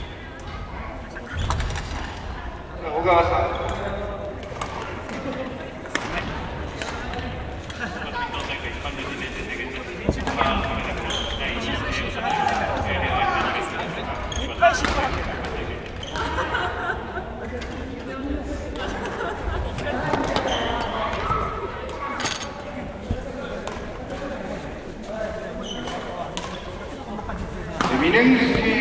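Shuttlecocks are struck with rackets with sharp taps, echoing in a large hall.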